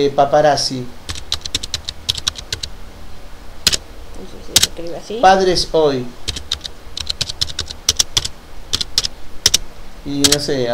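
Keys on a keyboard click in quick bursts of typing.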